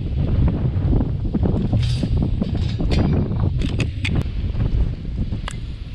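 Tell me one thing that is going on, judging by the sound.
A metal grill rattles as it is lifted.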